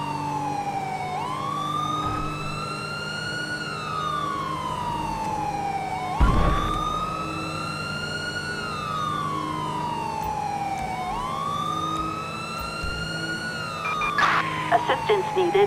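A police siren wails, rising and falling in long, slow sweeps.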